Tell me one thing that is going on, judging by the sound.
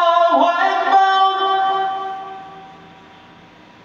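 A young man sings a long melodic phrase into a microphone, echoing in a room and trailing off.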